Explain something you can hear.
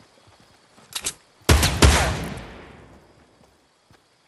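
A rifle fires a loud shot that rumbles away.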